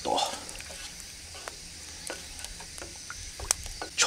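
Liquid sloshes as it is stirred.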